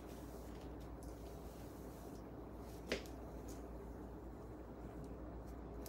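Scissors snip through hair.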